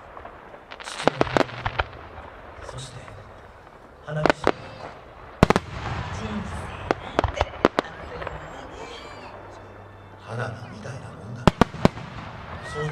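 Fireworks burst with loud booms and sharp bangs.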